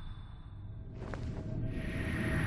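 A dark magic surge swells with a rising hum.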